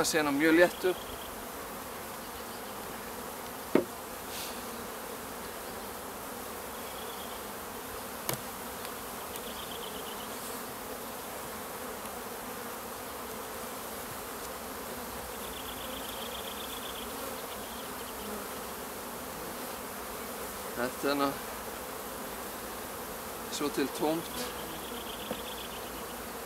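Wooden hive parts knock and scrape.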